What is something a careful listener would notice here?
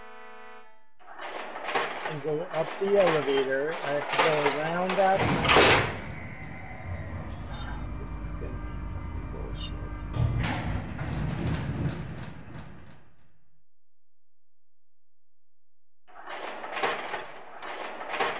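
A heavy iron gate creaks open.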